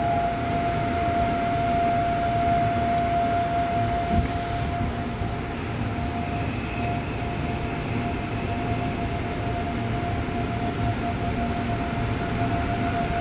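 A subway train rumbles and hums steadily as it pulls out of a station.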